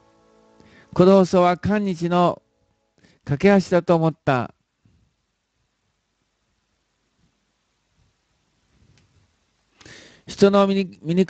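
An elderly man sings into a microphone in short phrases, close up.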